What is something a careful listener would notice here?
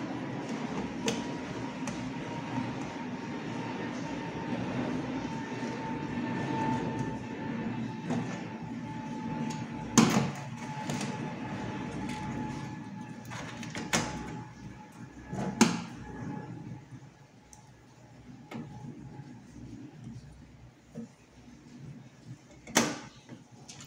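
Hands handle cables and plastic parts with light clicks and knocks.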